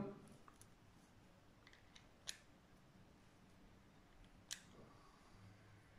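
A revolver's metal parts click as they are handled.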